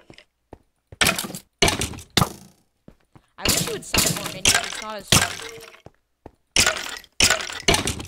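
A sword strikes a creature with sharp hits.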